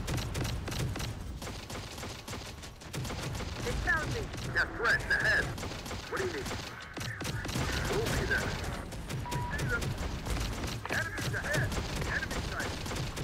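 Gunfire pops and explosions rumble in a battle.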